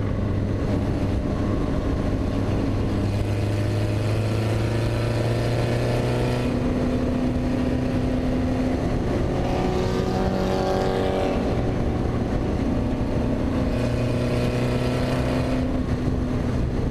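Wind rushes past an open cockpit.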